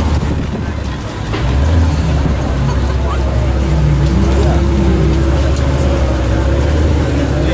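A crowd murmurs nearby outdoors.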